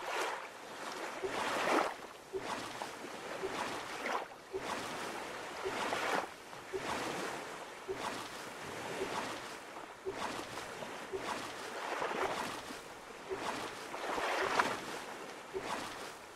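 A paddle splashes rhythmically through water.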